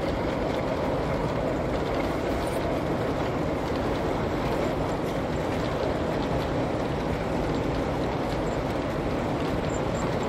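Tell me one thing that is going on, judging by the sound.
A model train rumbles steadily along the track, its wheels clicking over the rail joints.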